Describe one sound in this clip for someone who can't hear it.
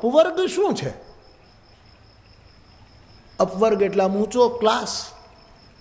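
An elderly man speaks with animation into a microphone, in short bursts.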